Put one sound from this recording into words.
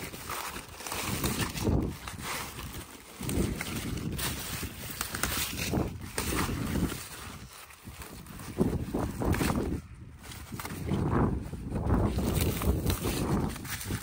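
Large leaves rustle as a gloved hand pushes them aside.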